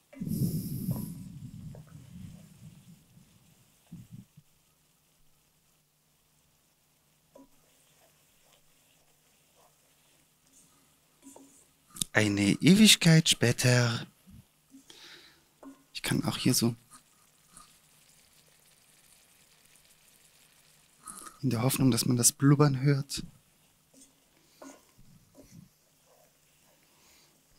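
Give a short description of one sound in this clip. A wooden spoon scrapes and stirs in a frying pan.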